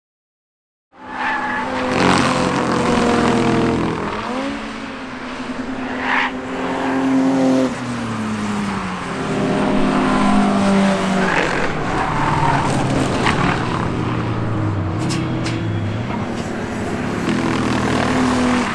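Racing car engines roar and rev.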